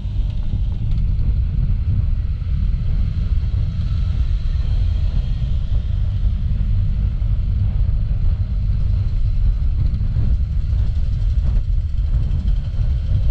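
Wind rumbles loudly against a moving motorcycle.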